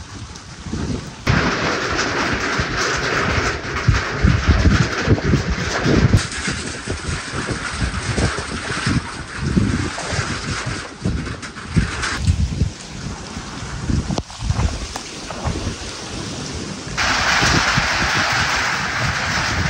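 Wind gusts loudly outdoors and rustles tree leaves.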